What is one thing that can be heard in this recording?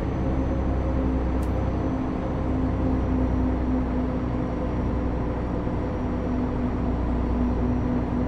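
A bus engine hums steadily from inside the cab.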